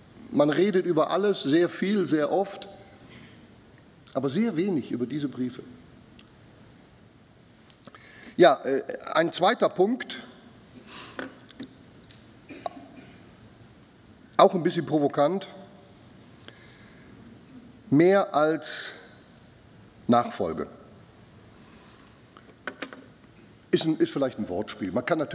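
A middle-aged man speaks with pauses into a microphone in an echoing hall.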